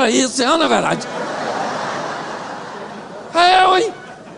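A crowd laughs and murmurs.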